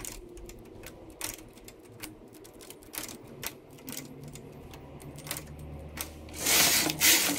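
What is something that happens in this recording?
Metal needles on a knitting machine click and tick.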